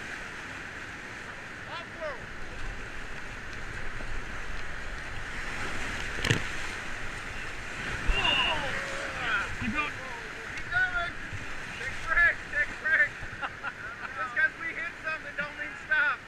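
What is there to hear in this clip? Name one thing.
Whitewater rapids roar and rush loudly.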